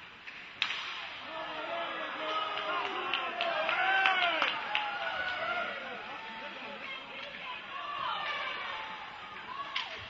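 A crowd of spectators cheers and shouts in a large echoing rink.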